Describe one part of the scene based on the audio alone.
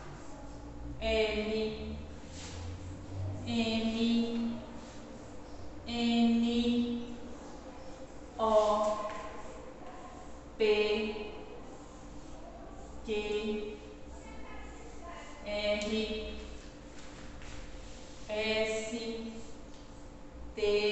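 A young woman calls out letters clearly, one at a time, close by.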